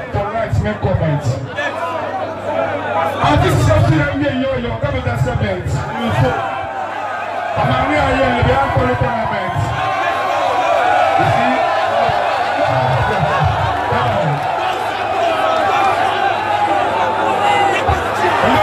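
A young man raps through a microphone and loudspeakers.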